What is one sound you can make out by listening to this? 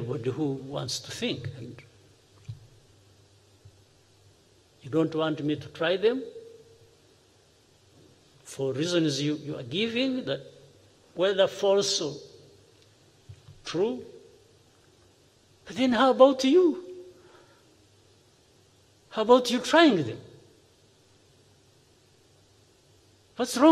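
A man speaks calmly into a microphone, pausing between phrases.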